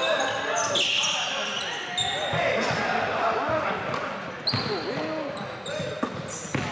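Sneakers squeak sharply on a hardwood court, echoing in a large gym.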